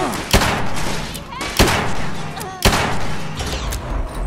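Loud rifle shots boom and echo, one after another.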